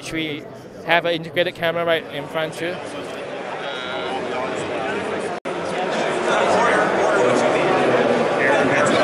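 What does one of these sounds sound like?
A crowd chatters in a large busy hall.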